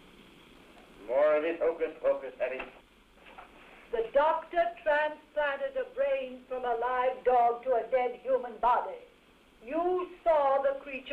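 An elderly woman speaks excitedly, close by.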